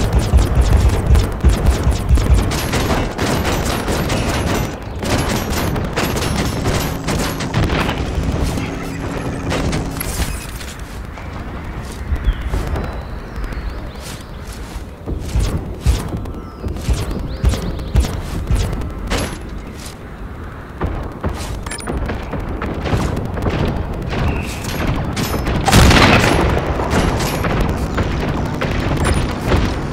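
Sharp blasts and hits from a video game crack again and again.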